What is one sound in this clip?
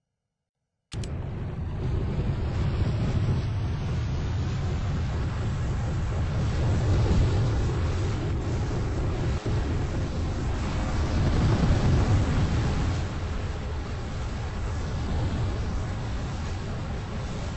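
A helicopter's rotors roar loudly and steadily.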